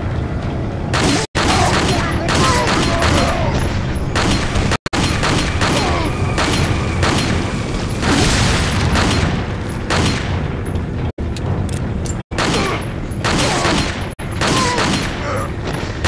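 Pistol shots bang out one after another.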